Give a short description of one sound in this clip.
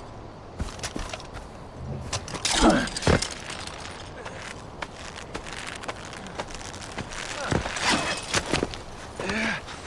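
A climbing rope creaks and rattles during a climb.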